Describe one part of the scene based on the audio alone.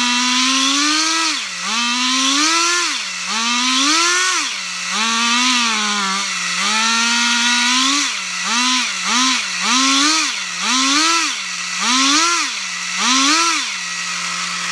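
A small model engine revs up and down in quick bursts.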